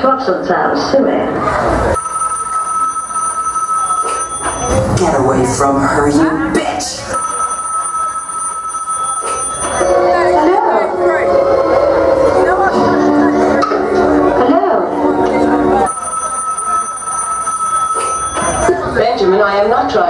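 A woman sings with animation over loudspeakers.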